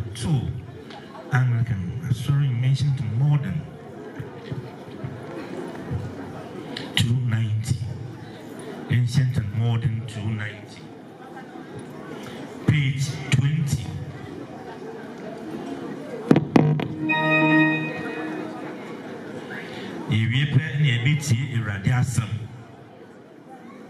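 A man speaks loudly through a microphone and loudspeakers in bursts, with pauses.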